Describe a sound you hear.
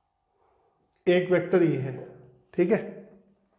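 A man speaks clearly and with animation, close by.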